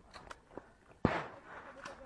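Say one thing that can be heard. Footsteps run across a dirt track.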